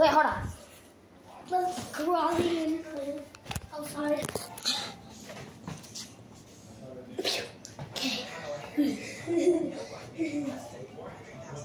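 A young boy talks close by with animation.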